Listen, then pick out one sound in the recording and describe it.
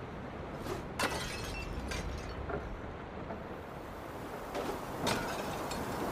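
Arrows strike wooden targets with sharp thuds.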